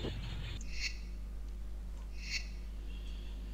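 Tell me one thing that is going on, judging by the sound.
Short soft chimes sound as a menu is browsed.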